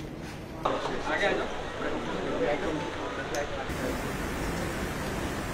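A crowd of men and women chatter and murmur nearby.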